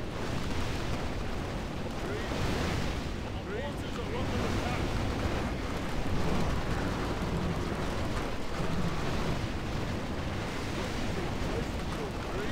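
A man talks casually into a microphone.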